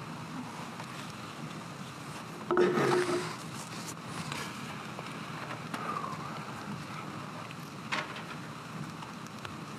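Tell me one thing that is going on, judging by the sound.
An elderly man sobs quietly into a microphone.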